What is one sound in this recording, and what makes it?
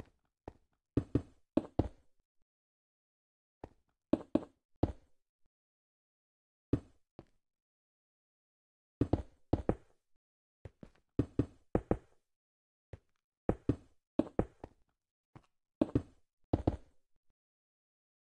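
Stone blocks crunch and thud in short quick bursts.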